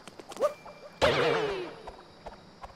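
A cartoonish wobbling boing sounds as a character jumps.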